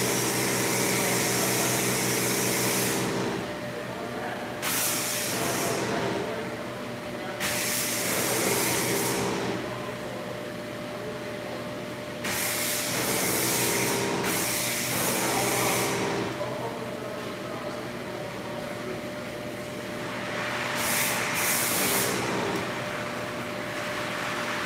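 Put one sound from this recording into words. A truck engine idles with a steady rumble indoors.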